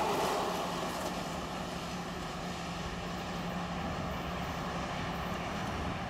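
A distant train approaches along the tracks with a low rumble.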